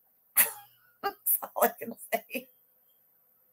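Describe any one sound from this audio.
A woman laughs close to a microphone.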